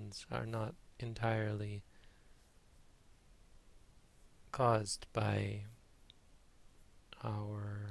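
A man speaks calmly and slowly into a nearby microphone, with long pauses.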